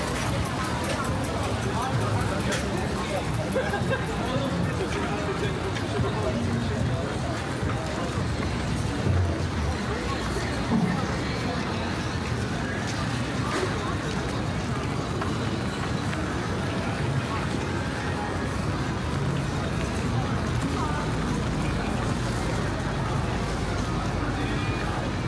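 Distant voices of people murmur outdoors.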